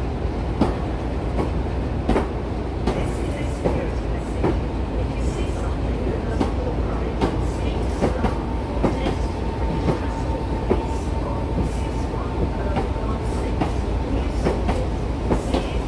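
A train rumbles past close by, its wheels clattering over the rail joints.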